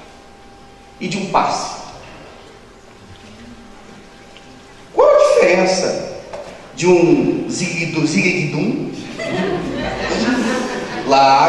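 A young man speaks with animation into a microphone, heard through loudspeakers in an echoing room.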